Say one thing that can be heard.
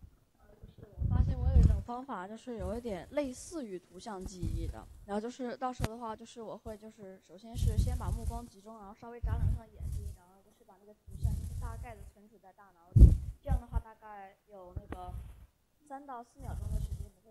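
A child speaks clearly, heard through a microphone in a room.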